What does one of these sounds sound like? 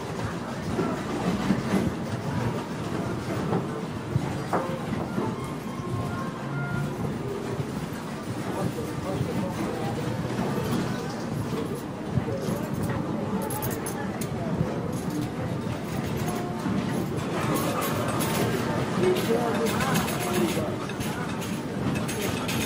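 A crowd murmurs and chatters in a large, busy hall.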